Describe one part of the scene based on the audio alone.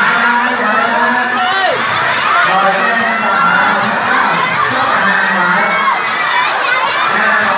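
A large crowd of children shouts and chatters excitedly outdoors.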